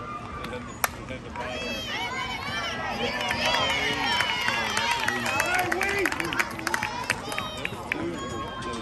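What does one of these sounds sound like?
Young women on a field shout and cheer excitedly in the distance.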